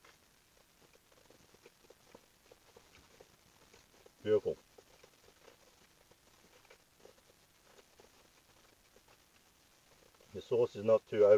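A middle-aged man chews food softly close by.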